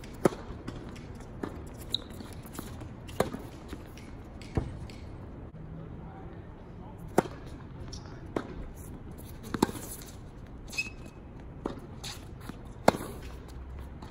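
A tennis ball bounces on a hard court with soft thuds.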